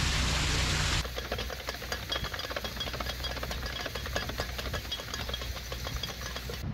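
A metal ratchet clicks as a lock paddle is wound.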